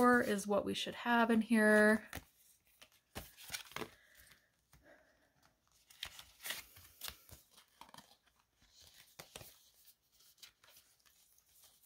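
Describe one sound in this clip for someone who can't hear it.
Paper notes rustle and flick as they are counted.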